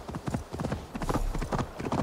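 Hooves clatter on stone.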